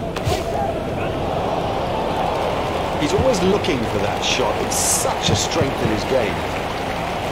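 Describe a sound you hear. A stadium crowd cheers loudly.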